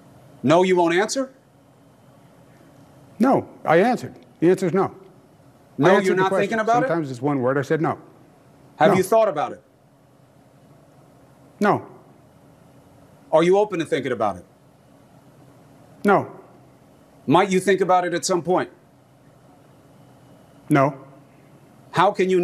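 A middle-aged man speaks with animation over an online call, in short bursts with pauses.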